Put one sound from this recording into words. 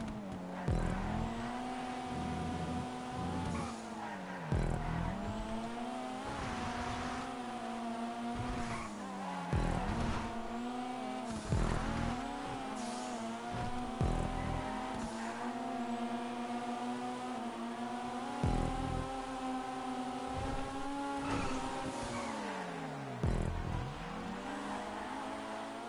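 Tyres screech as a car drifts through corners.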